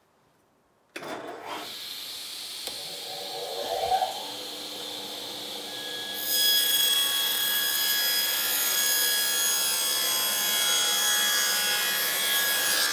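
A table saw motor starts and runs with a steady whine.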